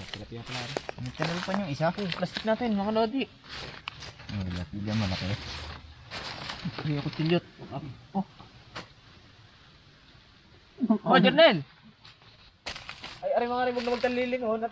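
Leaves and wrappers rustle as hands pick at food.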